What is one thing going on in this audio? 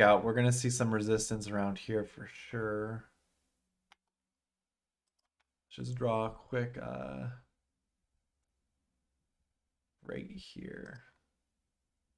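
A young man talks calmly into a close microphone, pausing between phrases.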